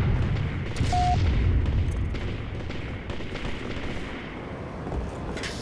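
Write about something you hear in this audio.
Footsteps thud steadily as a soldier runs across hard floors.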